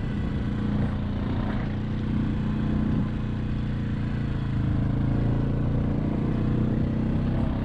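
Tyres crunch over snow.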